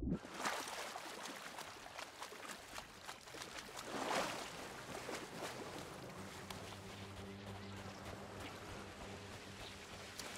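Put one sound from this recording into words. Small waves lap and wash onto a sandy shore.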